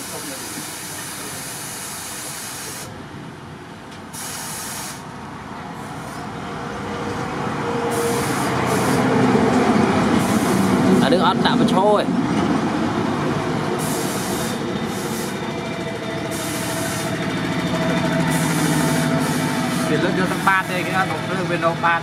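Hot steel hisses and bubbles steadily as it is held in water.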